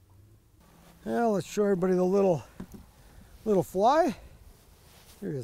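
An older man speaks calmly close by.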